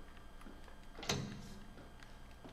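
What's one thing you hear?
A heavy metal door lock clicks open.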